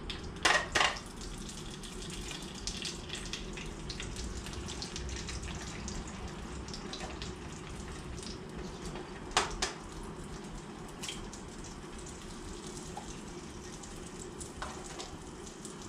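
An egg sizzles softly as it fries in a pan.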